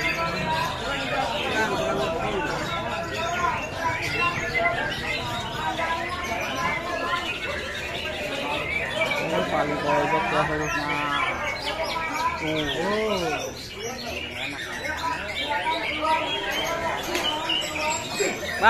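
Many caged songbirds chirp and trill loudly all around.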